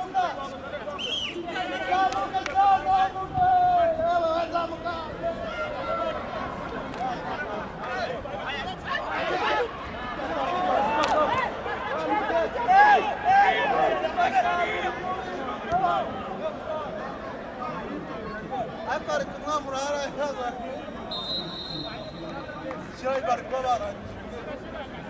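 Men shout to each other across an open outdoor pitch.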